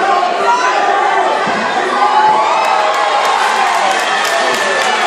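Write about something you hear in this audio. A crowd chatters and shouts loudly in a large echoing hall.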